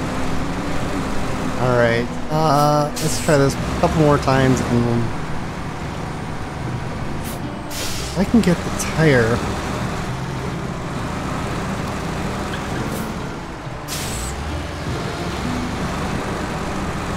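A heavy truck engine rumbles steadily as the truck crawls over rocky ground.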